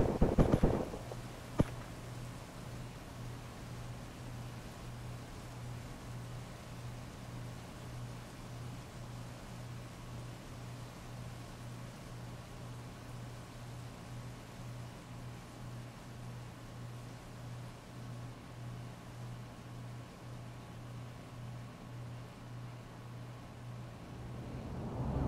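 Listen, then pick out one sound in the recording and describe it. Heavy rain pours steadily onto a street.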